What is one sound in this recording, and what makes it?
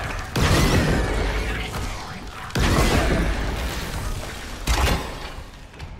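A heavy weapon fires loud blasts that echo and slowly fade.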